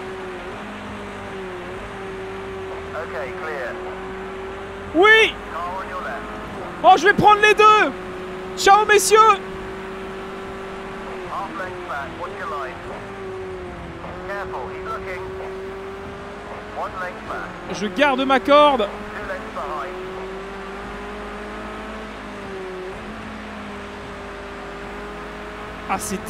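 A racing car engine drones steadily, rising and falling in pitch as it shifts gears.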